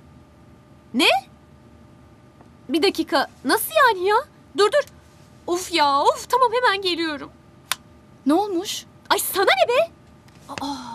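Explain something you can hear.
A young woman talks into a phone with animation.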